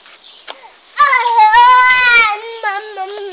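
A toddler squeals loudly close by.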